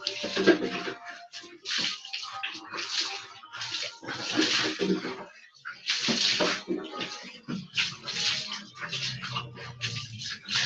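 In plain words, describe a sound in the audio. Water splashes onto a hard floor in repeated bursts.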